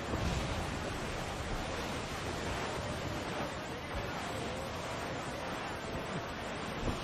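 Strong wind blows steadily over open sea.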